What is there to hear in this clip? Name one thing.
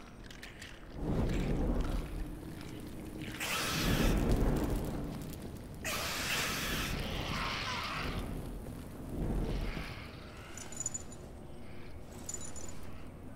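A torch flame crackles and roars.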